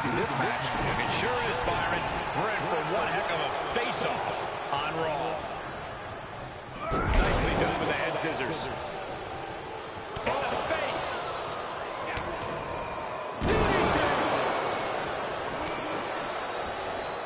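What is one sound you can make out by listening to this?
A crowd cheers loudly in a large arena.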